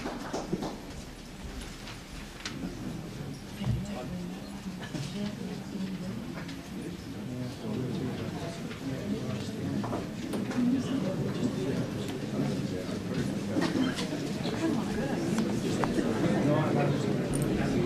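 People chatter in a crowd nearby.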